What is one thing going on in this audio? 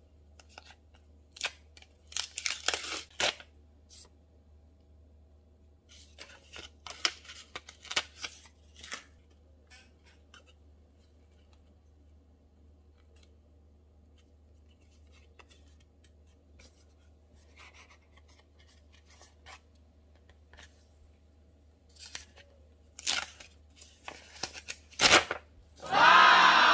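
Paper rustles and crinkles as hands handle it.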